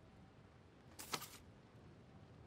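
A paper page turns with a quick rustle.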